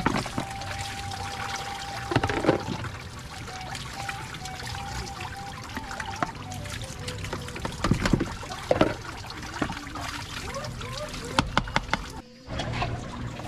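Water splashes in a basin.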